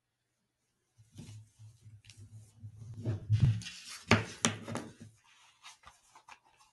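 Gloved hands handle a cable, making soft rustling and rubbing sounds.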